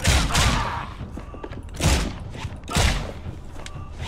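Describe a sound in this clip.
Pistol shots ring out loudly in quick succession, echoing in a room.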